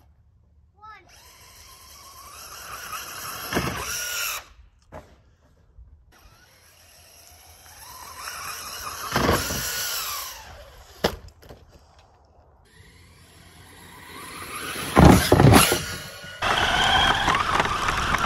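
A remote-control car's electric motor whines loudly, rising in pitch as it speeds up.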